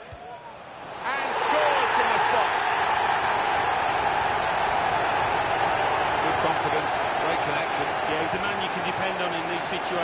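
A stadium crowd suddenly roars and cheers loudly.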